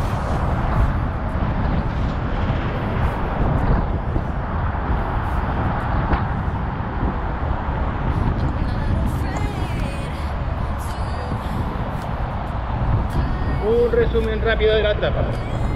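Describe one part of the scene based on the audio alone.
Bicycle tyres hum over a smooth path.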